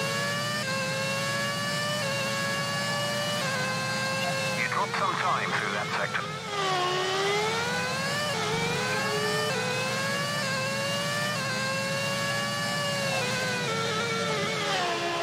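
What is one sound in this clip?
A racing car engine whines loudly, its pitch rising through the gears and dropping as it slows.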